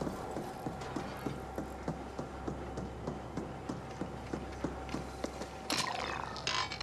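Footsteps clank on a metal floor at a steady pace.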